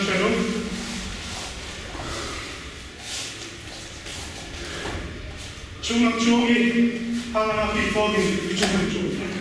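A young man shouts loudly in an echoing hall.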